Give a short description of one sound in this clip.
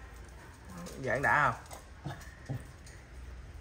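Puppies whimper and squeal close by.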